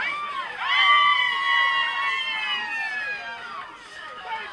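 Young women shout and cheer loudly close by.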